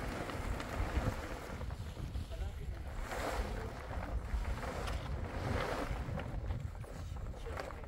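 A plastic tarp rustles and crinkles as it is dragged.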